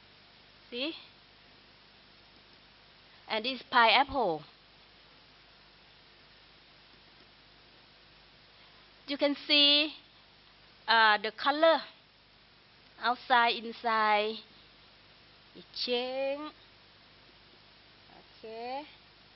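A woman speaks calmly through a microphone, pausing between phrases.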